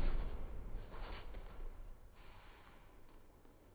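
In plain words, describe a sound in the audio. Bare feet shuffle and thud softly on a padded floor.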